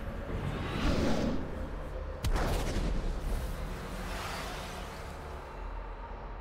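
Magic spells whoosh and shimmer.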